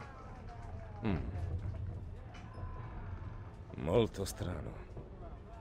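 A man murmurs thoughtfully nearby.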